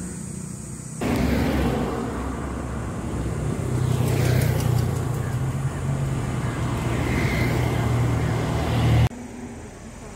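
Traffic passes by on a road.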